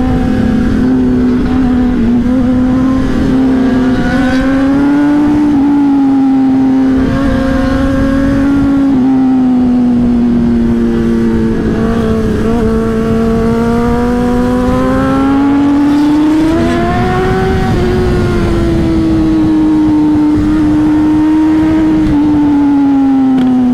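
A motorcycle engine hums steadily up close, rising and falling in pitch as it speeds up and slows down.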